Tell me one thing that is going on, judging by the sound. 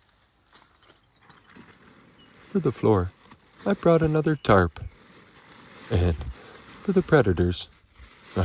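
A tarp rustles as someone crawls under it.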